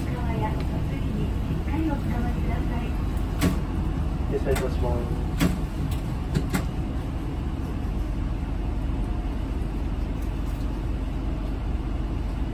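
A bus engine rumbles low and steady from inside the cabin.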